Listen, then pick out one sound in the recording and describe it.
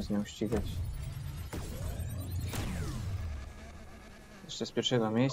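A racing car engine roars and revs up.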